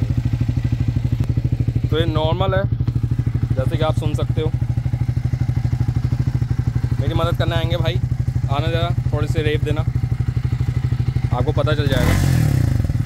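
A motorcycle engine idles with a steady, fast thumping putter.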